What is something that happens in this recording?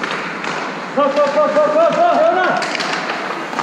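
Men call out to each other in a large echoing rink.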